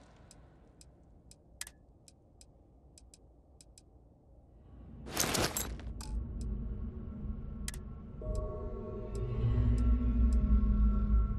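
Soft interface clicks tick as menu items are selected.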